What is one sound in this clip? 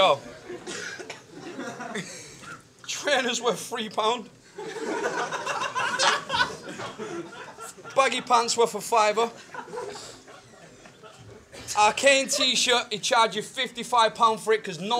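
A young man raps aggressively and loudly at close range.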